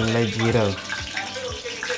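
Seeds patter into a pan.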